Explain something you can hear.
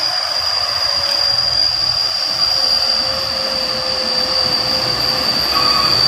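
A truck engine rumbles as it drives past close by.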